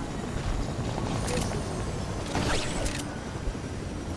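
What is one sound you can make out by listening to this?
A helicopter's rotor thumps nearby.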